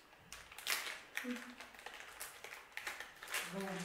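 A plastic snack wrapper crinkles as it is torn open.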